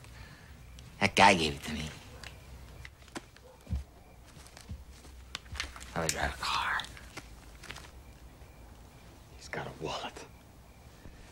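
A second man speaks calmly.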